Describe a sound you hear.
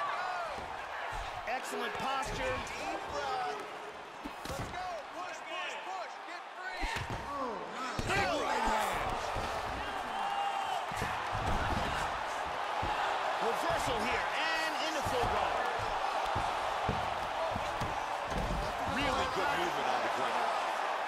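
A crowd roars and cheers steadily.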